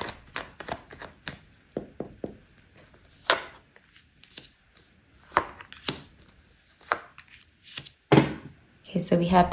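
Playing cards tap and slide onto a table.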